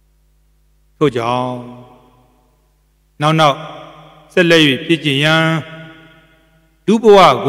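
A man chants slowly in a deep, drawn-out voice into a microphone.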